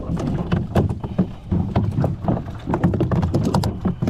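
A small fish flaps and slaps inside a plastic tub.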